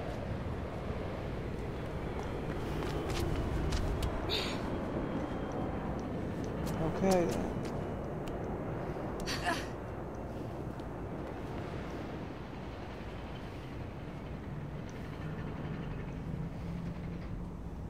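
Footsteps run across a hard rooftop.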